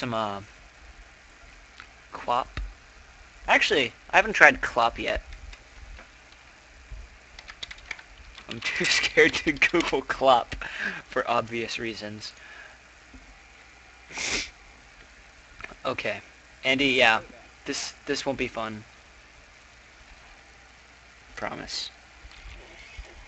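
A young man talks casually into a close microphone, in short bursts with pauses.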